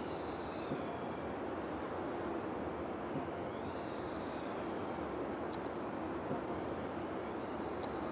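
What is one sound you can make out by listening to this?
A tornado roars with a steady rushing wind.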